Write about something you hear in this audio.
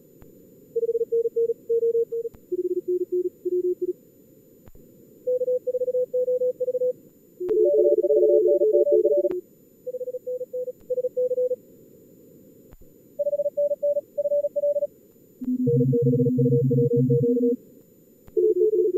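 Morse code tones beep in quick bursts, several at different pitches, sometimes overlapping.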